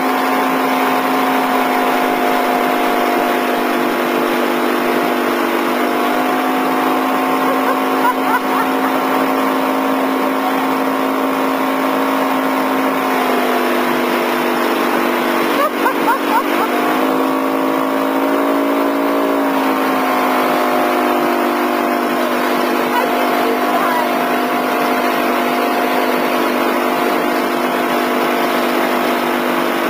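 A boat engine drones steadily close by, its pitch shifting now and then.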